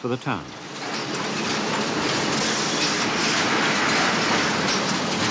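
Heavy rolling machinery rumbles and roars steadily.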